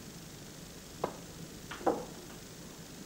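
Snooker balls click sharply against each other on the table.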